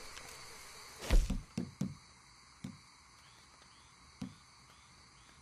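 Soft menu clicks and thuds sound one after another.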